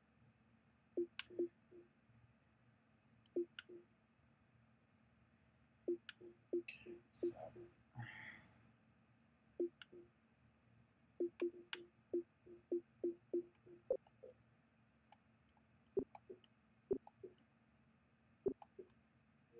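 Menu selection clicks tick quickly, one after another.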